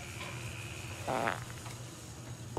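A metal stove door creaks open.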